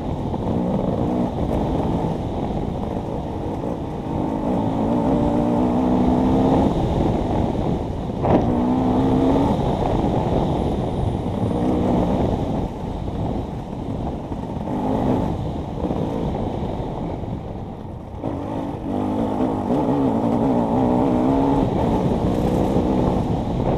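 Tyres crunch and rumble over loose dirt and stones.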